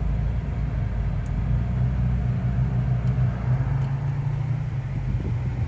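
Tyres crunch and rumble over a rough dirt road.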